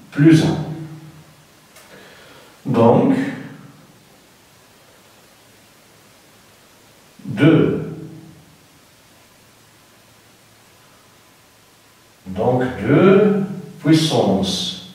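A man speaks in short bursts with long pauses.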